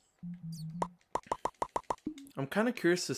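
Soft clicks tick rapidly in quick succession.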